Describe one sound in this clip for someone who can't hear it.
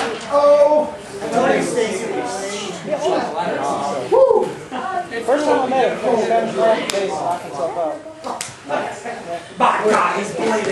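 A crowd of young men shouts and cheers close by.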